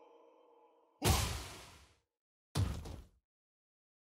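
A body crashes to the floor.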